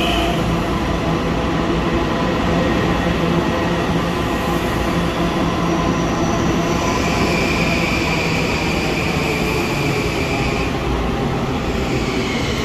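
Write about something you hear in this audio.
A train rumbles slowly along the platform in a large echoing station.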